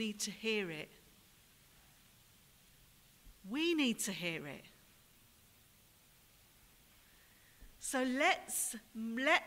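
A woman speaks through a microphone in short phrases with long pauses, in an echoing hall.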